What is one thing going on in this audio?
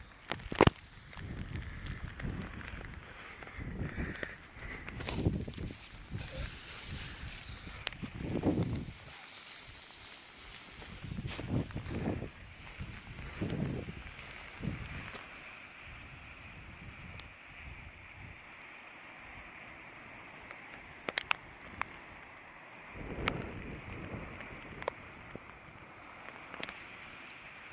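Wind gusts roar against the microphone outdoors.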